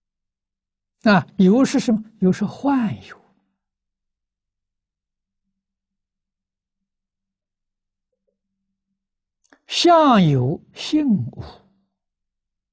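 An elderly man speaks calmly through a close microphone, with long pauses.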